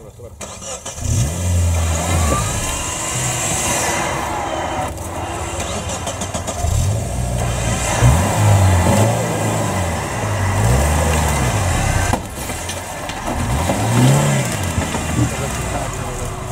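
Tyres churn and spin in mud.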